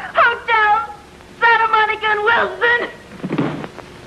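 A woman cries out in a high, agitated voice.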